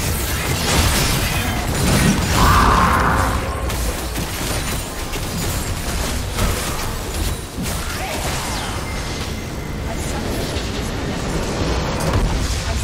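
Magic spells crackle and blast in rapid succession during a fight.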